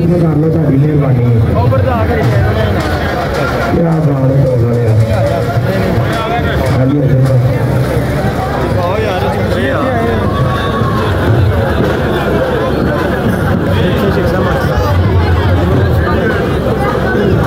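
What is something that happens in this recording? A crowd chatters loudly all around outdoors.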